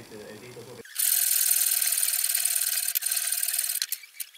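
A metal file rasps back and forth across steel.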